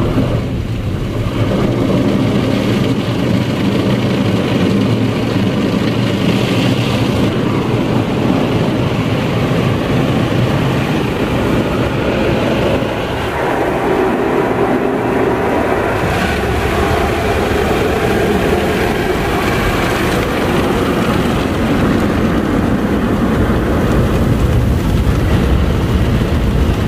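Water sprays and drums hard on a car's windshield and roof, heard from inside.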